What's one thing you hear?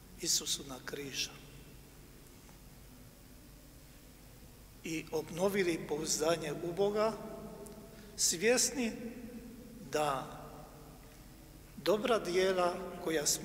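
An elderly man speaks slowly and solemnly through a microphone in a large echoing hall.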